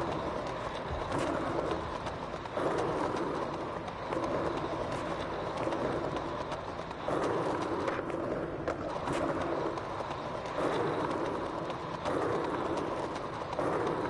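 A skateboarder's foot scuffs the ground with each push.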